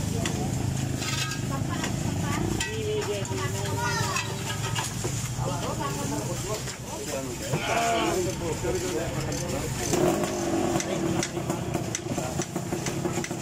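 Men talk nearby in casual voices, outdoors.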